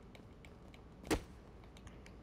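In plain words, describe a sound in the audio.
A heavy stomp thuds down onto a body.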